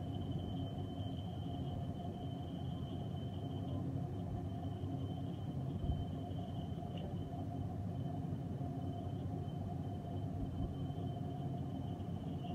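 A lathe motor hums and rumbles steadily.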